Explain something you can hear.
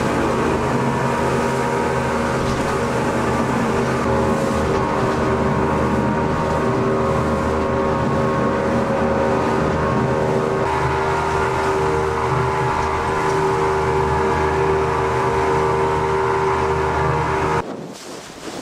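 An outboard motor roars loudly and steadily.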